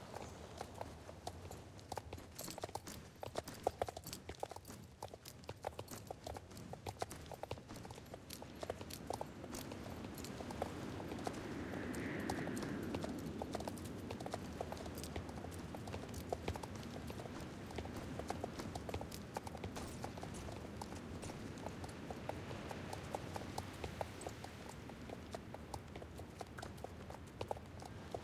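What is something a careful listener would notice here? Horse hooves clop steadily along a path.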